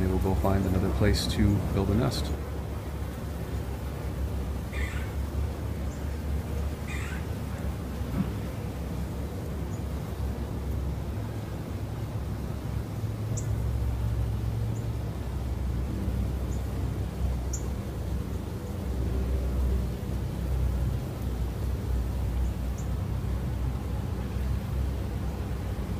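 A swarm of bees hums steadily outdoors.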